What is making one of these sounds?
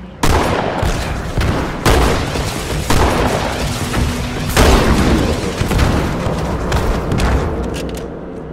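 A shotgun fires loudly several times.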